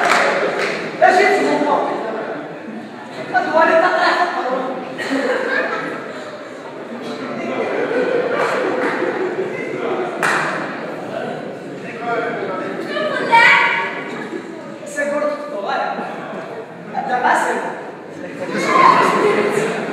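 A young woman speaks loudly with animation on a stage in an echoing hall.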